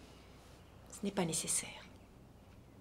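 A woman speaks softly up close.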